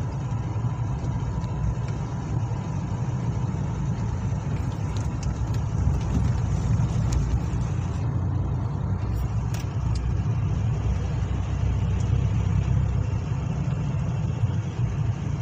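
A car engine hums steadily from inside the cab.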